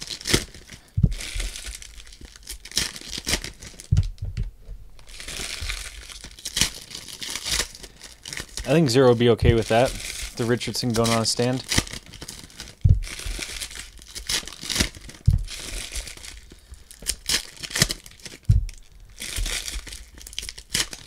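Foil wrappers crinkle and rustle as hands tear open card packs.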